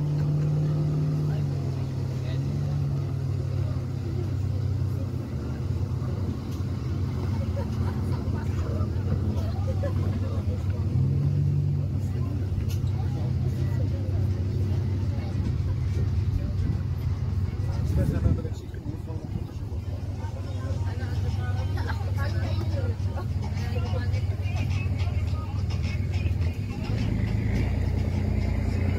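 A motorboat engine drones steadily across the water.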